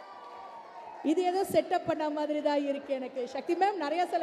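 A middle-aged woman speaks into a microphone, heard loudly over loudspeakers.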